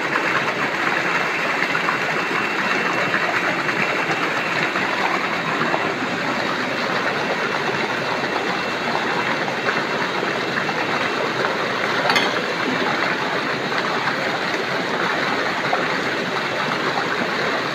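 Water splashes and churns steadily.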